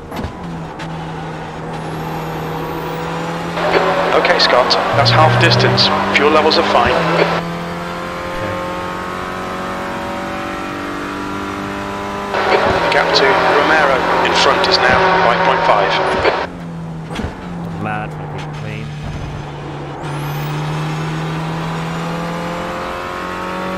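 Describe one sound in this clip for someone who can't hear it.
A racing car engine revs up and down through gear changes.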